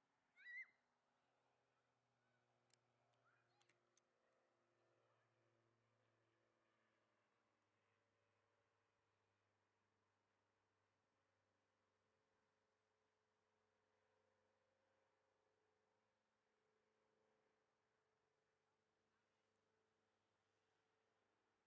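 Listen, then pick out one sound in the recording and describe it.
Propeller aircraft engines idle with a low, steady hum in the distance.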